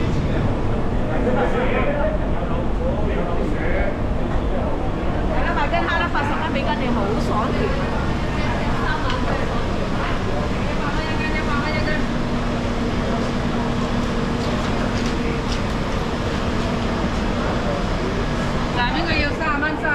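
Adult men and women chatter nearby in a busy, echoing indoor space.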